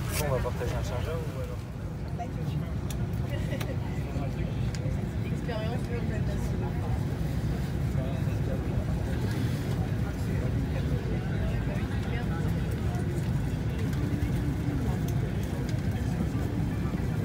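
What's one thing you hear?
A steady low hum of an aircraft cabin fills the air.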